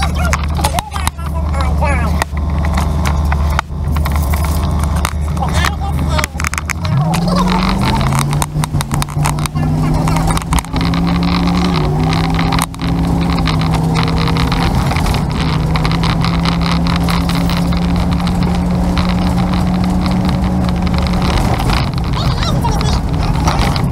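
Wind buffets loudly against the moving vehicle.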